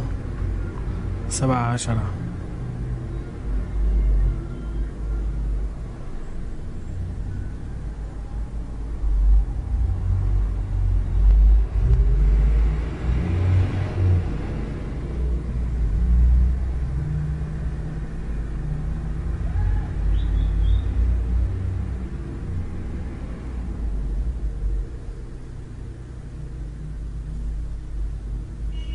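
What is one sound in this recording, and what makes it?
Car engines hum and tyres roll past on a street.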